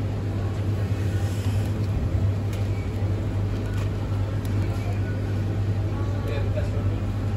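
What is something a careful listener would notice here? A plastic food container crinkles as a hand picks it up.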